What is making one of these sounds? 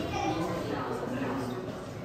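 A crowd of adult men and women chatter nearby.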